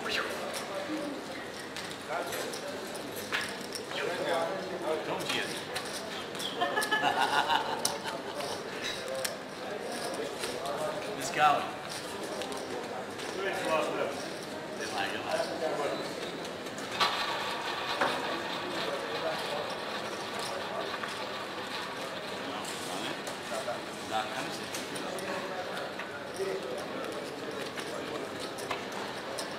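Gaming chips clack together on a table.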